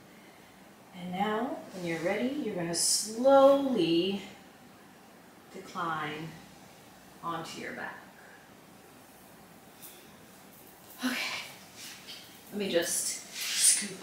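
A young woman speaks calmly and close by, giving instructions.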